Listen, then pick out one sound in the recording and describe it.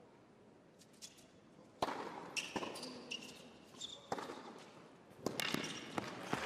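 Tennis rackets strike a ball back and forth in an indoor arena.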